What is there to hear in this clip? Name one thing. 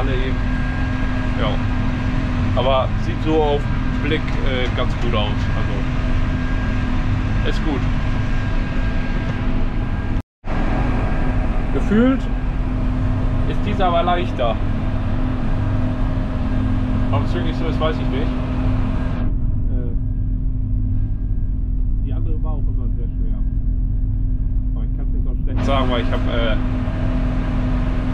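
A tractor engine drones steadily from inside the cab.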